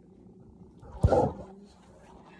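Something knocks sharply against a surface close by.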